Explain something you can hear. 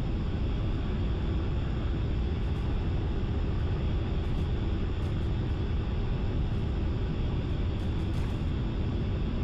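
A jet engine roars steadily from inside the cockpit.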